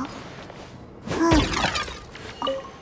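A sword swings through the air with a sharp whoosh.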